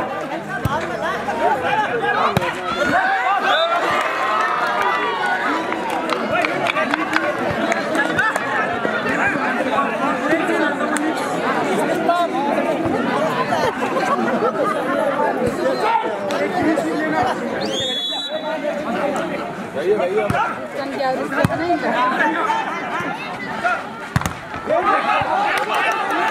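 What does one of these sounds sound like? A volleyball is hit with sharp slaps.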